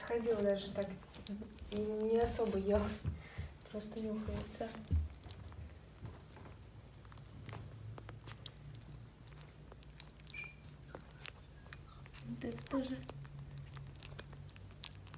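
Puppies lap and chew wet food noisily, close by.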